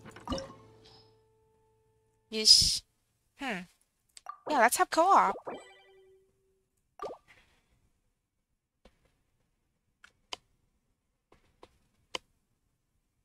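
Game menu sounds chime and click.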